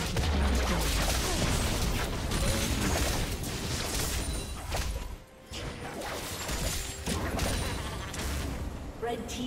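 Magic blasts crackle and explode in a hectic fight.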